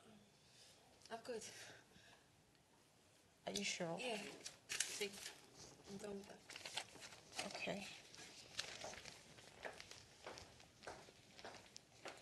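Another young woman answers in a low voice.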